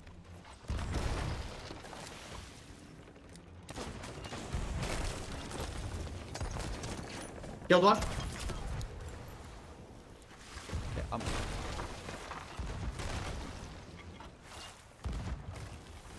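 A gun fires with loud blasts.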